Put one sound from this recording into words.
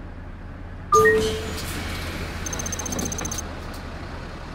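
Bus doors open with a sharp pneumatic hiss.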